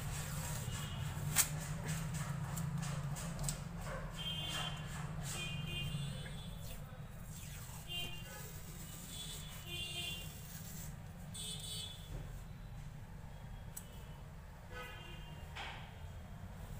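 Adhesive tape is pulled off a roll with short sticky rasps.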